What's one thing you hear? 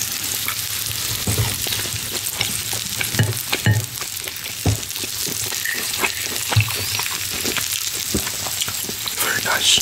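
A man chews food with soft wet smacks.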